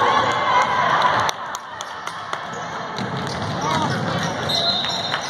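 A crowd of spectators cheers and calls out in a large echoing gym.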